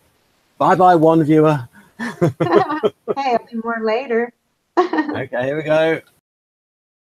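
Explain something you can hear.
A young woman talks cheerfully over an online call.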